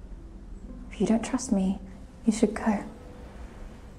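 A second young woman speaks calmly nearby.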